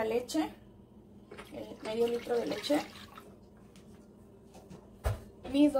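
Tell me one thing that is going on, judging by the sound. Milk pours into a pot.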